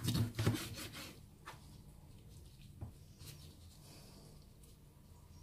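A knife cuts through raw meat on a plastic board.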